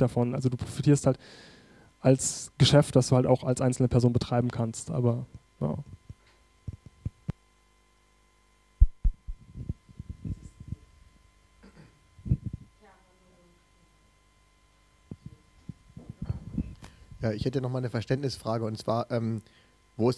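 A young man speaks calmly into a microphone in a room with a slight echo.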